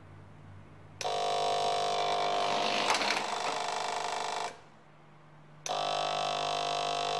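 An electric timer buzzes loudly and steadily.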